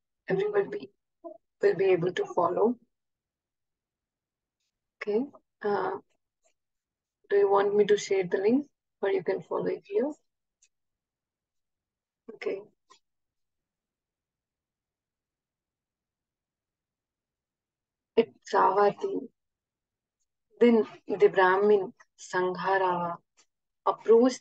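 A young woman speaks calmly over an online call, in short bursts with pauses.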